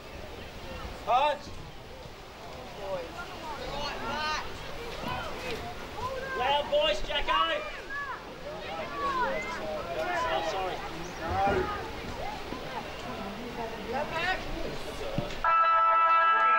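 Young women shout and call to each other outdoors, some near and some farther off.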